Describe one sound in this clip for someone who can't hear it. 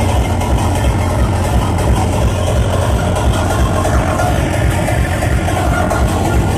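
Loud, fast electronic dance music pounds through loudspeakers with a heavy, rapid bass beat.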